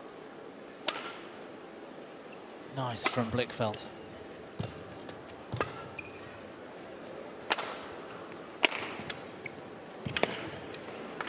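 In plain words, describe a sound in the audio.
Rackets strike a shuttlecock in sharp, quick pops during a rally.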